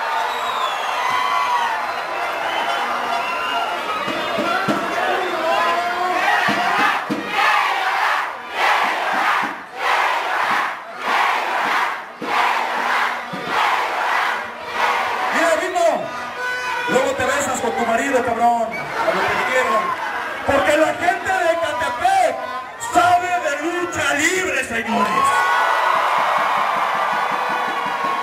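A large crowd cheers and chants.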